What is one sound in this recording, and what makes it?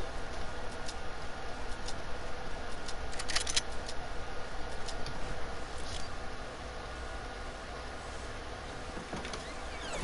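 Footsteps patter quickly.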